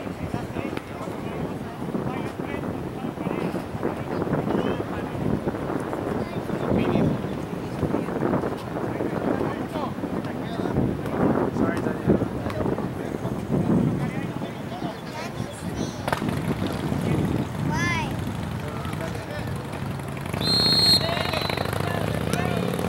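Young men shout and call out to each other across an open field outdoors.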